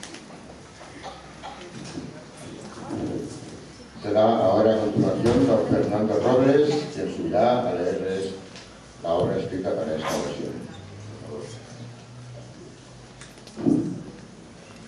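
A double bass plays low notes.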